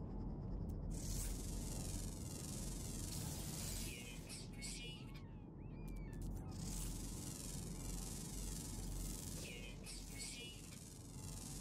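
An electronic scanner whirs and chirps.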